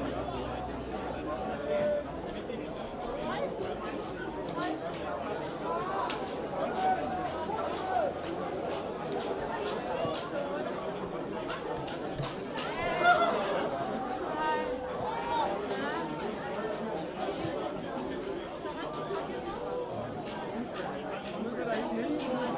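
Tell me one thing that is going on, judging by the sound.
Young men shout and call to each other across an open field.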